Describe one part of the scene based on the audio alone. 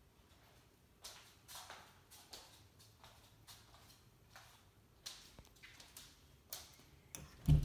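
Footsteps tread on a wooden floor.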